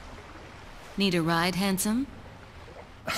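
A young woman speaks in a low, teasing voice close by.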